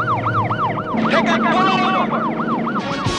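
A young man shouts into a radio microphone.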